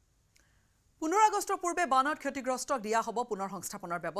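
A woman speaks clearly and steadily into a microphone, like a news presenter.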